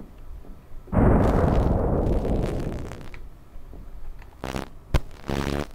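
Static hisses and crackles loudly.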